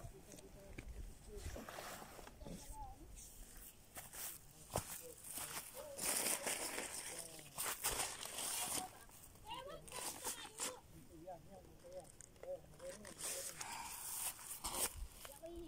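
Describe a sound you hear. Wind gusts across open ground and rustles through grass.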